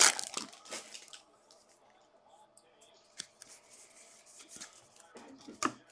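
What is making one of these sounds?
Trading cards shuffle softly in a hand.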